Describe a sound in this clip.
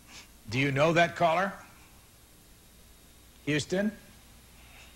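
An elderly man speaks calmly and close to a microphone, in short phrases with pauses.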